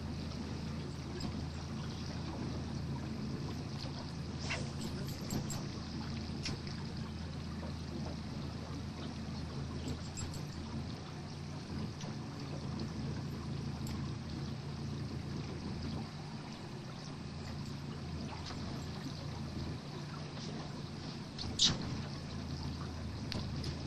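Water laps gently against a small boat's hull.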